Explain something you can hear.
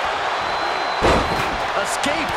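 A heavy body slams onto a wrestling ring mat with a thud.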